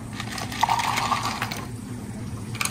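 Water pours into a glass of ice.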